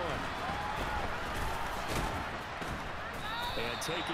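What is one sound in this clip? Football players collide with thudding pads.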